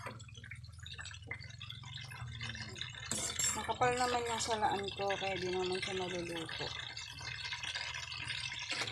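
Liquid bubbles and simmers in a pot.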